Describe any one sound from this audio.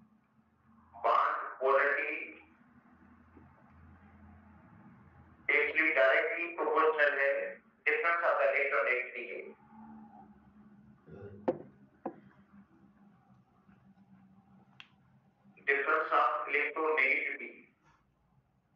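A man speaks calmly into a headset microphone, in short bursts.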